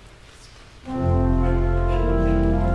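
A pipe organ starts playing loud sustained chords.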